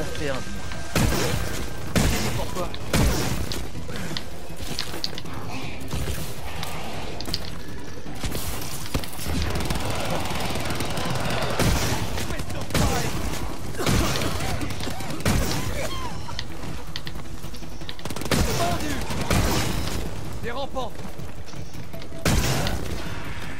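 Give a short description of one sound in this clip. A futuristic gun fires bursts with loud crackling blasts.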